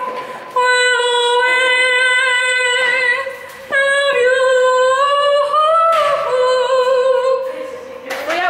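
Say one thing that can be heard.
A young woman sings long, loud held notes close by.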